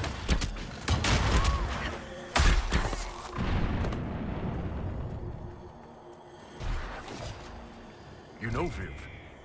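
Swords clash loudly in a fight.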